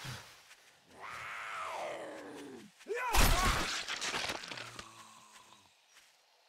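A zombie groans and snarls.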